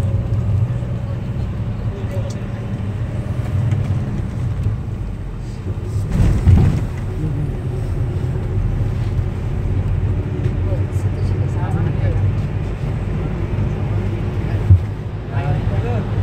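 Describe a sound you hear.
A bus engine rumbles steadily from inside while driving.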